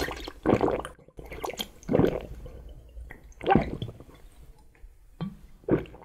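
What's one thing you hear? A man sucks and slurps a drink loudly and close up.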